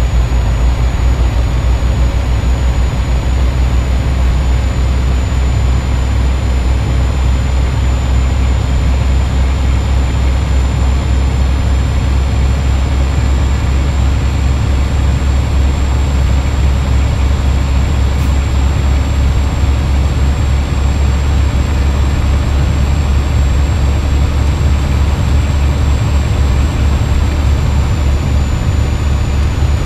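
A truck engine rumbles steadily.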